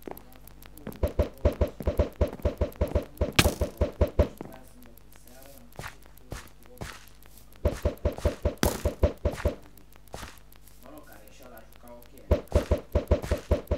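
Footsteps thud quickly on grass and dirt.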